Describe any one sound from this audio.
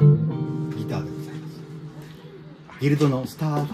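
An electric guitar chord rings out and slowly fades.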